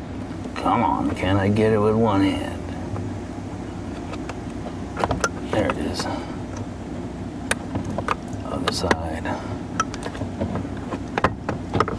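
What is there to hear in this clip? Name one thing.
A metal probe clicks and taps against a plastic connector.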